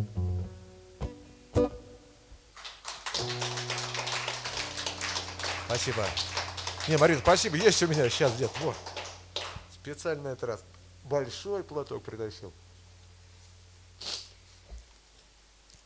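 An acoustic guitar chord rings out.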